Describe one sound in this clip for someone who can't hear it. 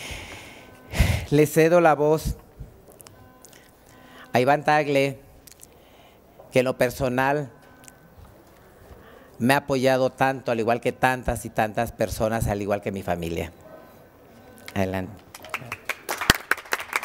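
A woman speaks calmly into a microphone in short phrases with pauses.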